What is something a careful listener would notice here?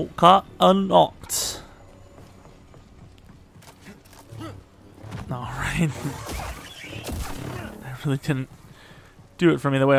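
A lightsaber hums and swooshes through the air.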